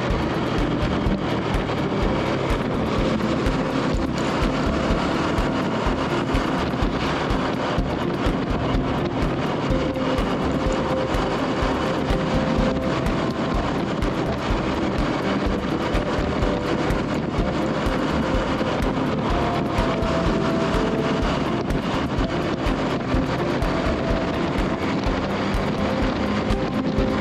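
A motorcycle engine hums steadily close by as it rides along.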